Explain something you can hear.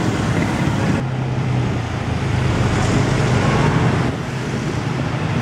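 Vehicle engines rumble in passing traffic.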